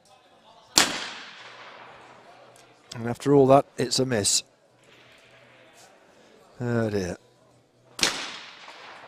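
A shotgun fires with a sharp bang that rings out in the open air.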